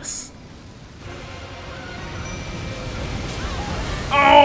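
A loud magical blast roars and hisses.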